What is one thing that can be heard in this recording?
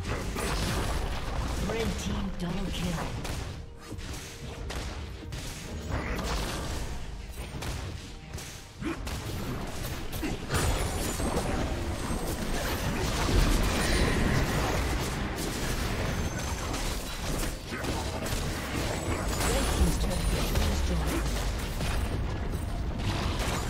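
Game spell blasts and weapon clashes ring out in quick bursts.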